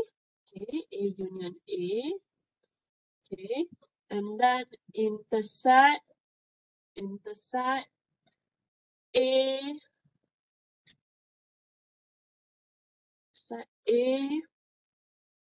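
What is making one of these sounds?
A woman explains calmly through a microphone, in short phrases with pauses.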